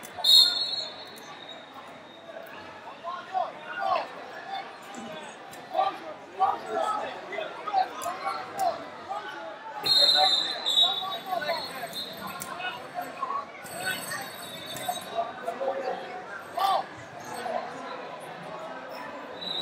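Men shout encouragement from the sidelines in a large echoing hall.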